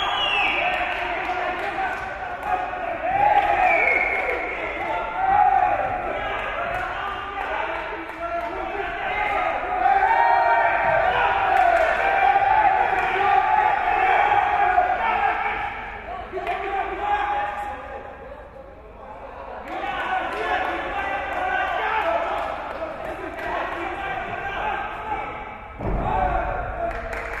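A crowd of men shouts and cheers in a large echoing hall.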